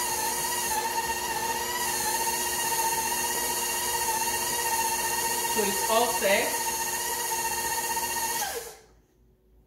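A stand mixer whirs steadily, then stops.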